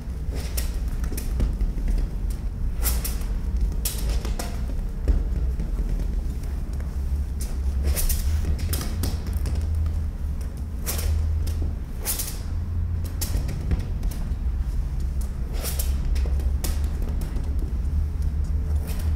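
Sharp electronic clicks crackle at irregular moments.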